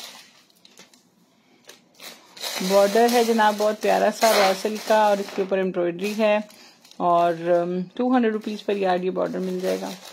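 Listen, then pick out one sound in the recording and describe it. Fabric rustles as it is handled and dropped.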